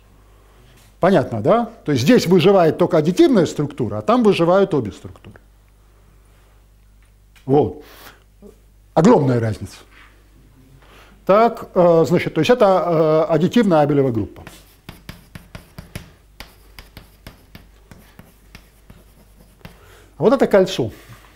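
An elderly man lectures with animation.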